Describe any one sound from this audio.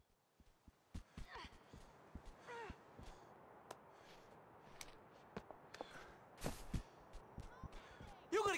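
Footsteps tap on hard ground.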